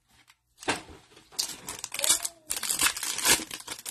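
A foil pack crinkles in someone's hands.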